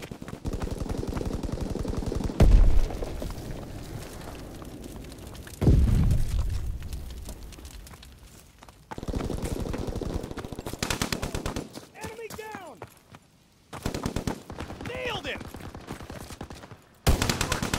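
Footsteps patter quickly as someone runs.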